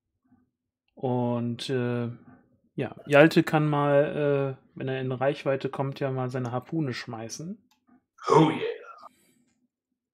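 A man speaks calmly through a headset microphone, as if over an online call.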